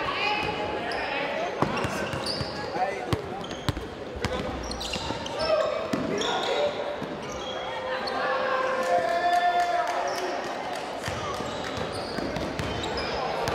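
A crowd of spectators chatters in the background.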